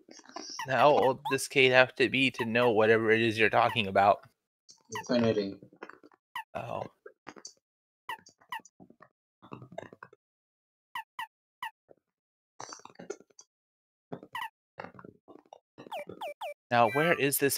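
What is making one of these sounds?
Short electronic blips sound as a game menu cursor moves between options.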